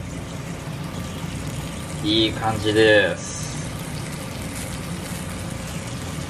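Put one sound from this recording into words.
Food sizzles softly in a hot grill pan.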